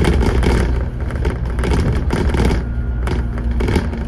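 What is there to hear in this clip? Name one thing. Cars pass by on the road.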